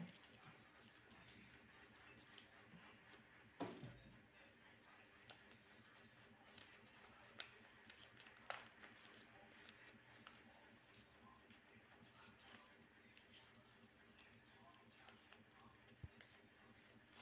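Paper crinkles and rustles as it is folded by hand.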